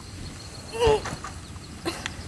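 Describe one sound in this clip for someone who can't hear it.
A young boy exclaims briefly, close to a microphone.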